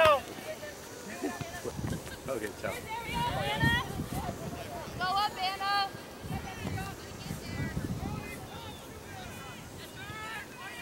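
Young women shout and call to one another across an open field.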